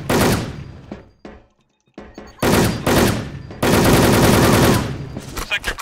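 Loud gunshots fire in bursts, echoing in a hall.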